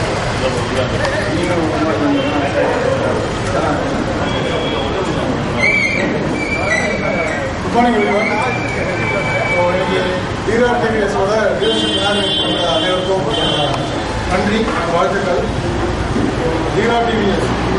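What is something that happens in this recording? A man speaks into a microphone, heard through a loudspeaker in an echoing room.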